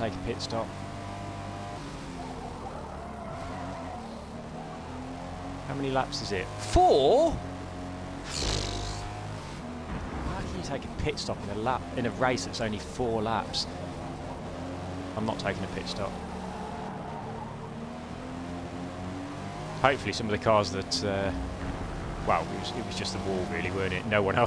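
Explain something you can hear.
A car engine hums and revs up and down as it races.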